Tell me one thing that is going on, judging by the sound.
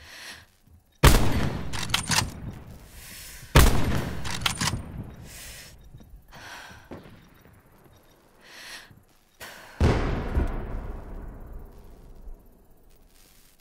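Loud rifle shots crack and echo away outdoors.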